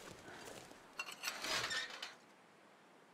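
A metal gate rattles and creaks open.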